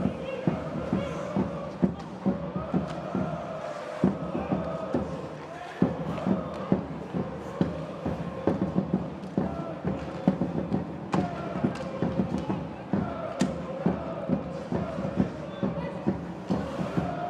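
Hockey sticks click against a puck and the ice.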